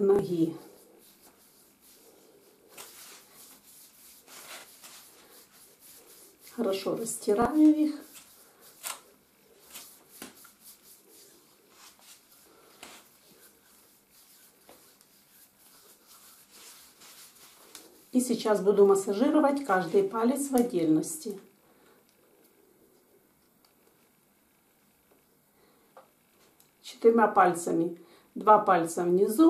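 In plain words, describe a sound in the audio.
Hands softly rub and knead bare skin.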